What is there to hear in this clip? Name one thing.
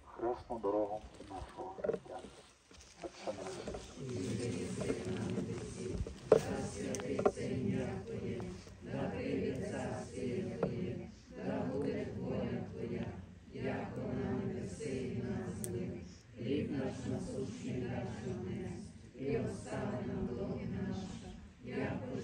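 A group of men and women pray aloud together in unison outdoors.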